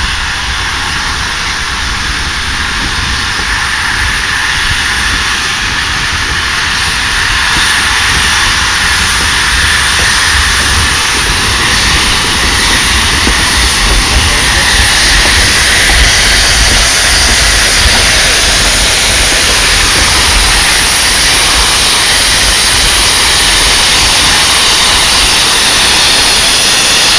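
A train rolls slowly along the track.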